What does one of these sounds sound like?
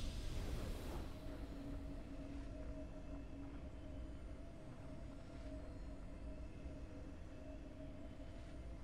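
A game's victory fanfare sounds softly with steady held tones.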